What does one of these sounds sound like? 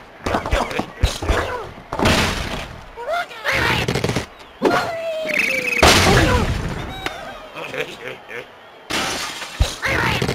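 Wooden blocks crash and clatter as a structure collapses.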